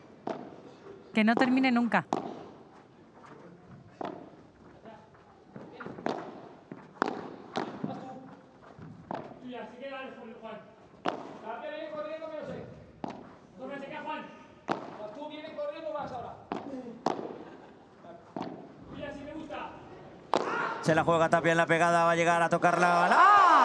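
A padel ball is struck back and forth with sharp pops, bouncing off the court and glass walls.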